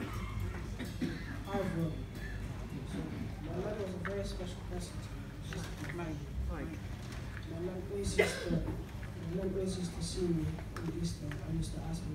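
A young man speaks calmly through a microphone in an echoing hall.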